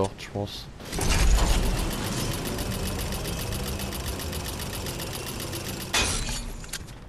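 A zipline whirs steadily as a rider slides along a cable.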